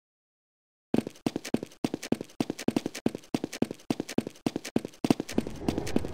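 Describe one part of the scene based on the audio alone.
Footsteps patter on a hard floor.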